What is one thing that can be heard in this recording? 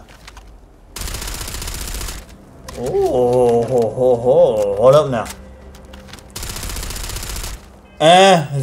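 A gun fires in rapid bursts.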